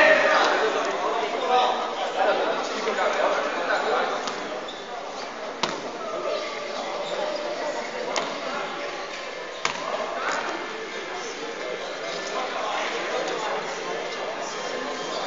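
Spectators chatter and shout in a large echoing hall.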